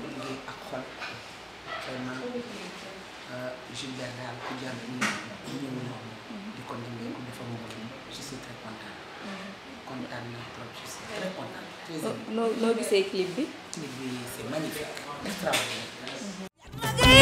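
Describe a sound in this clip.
A middle-aged woman speaks earnestly and close by.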